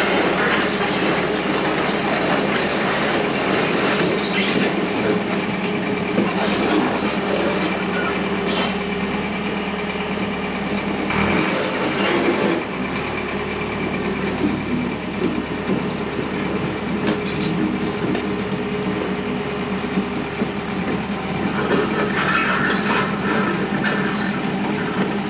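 An excavator engine rumbles steadily nearby.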